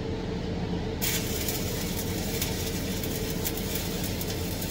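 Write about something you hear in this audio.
An electric welding arc crackles and sizzles steadily.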